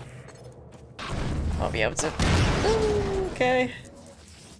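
A game weapon fires with a loud electric blast.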